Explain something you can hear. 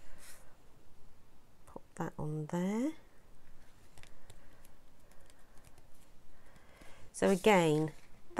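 Paper rustles and taps softly as it is handled.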